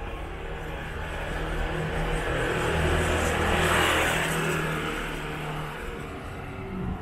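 A motor scooter engine hums closer, grows loud, then fades a little.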